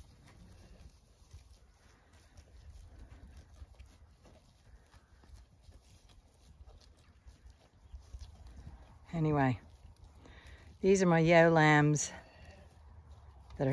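Sheep tear and munch grass close by.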